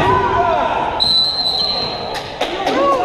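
A referee blows a long whistle.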